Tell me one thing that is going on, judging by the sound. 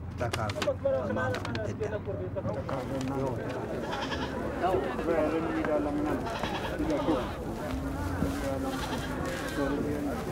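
Men talk calmly nearby.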